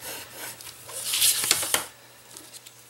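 A sheet of paper slides and rustles across a table.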